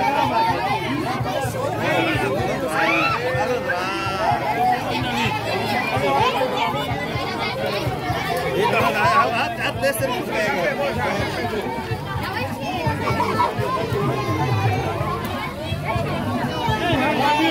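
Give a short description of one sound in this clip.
Plastic wrappers rustle and crinkle close by.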